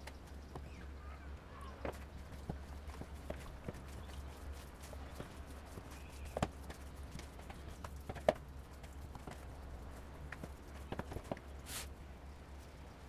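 Hands squish and knead soft dough in a plastic bowl.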